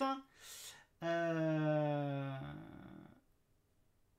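A man sings a long drawn-out note.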